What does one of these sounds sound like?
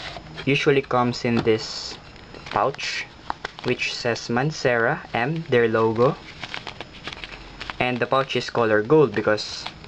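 Foil fabric crinkles as hands handle a pouch.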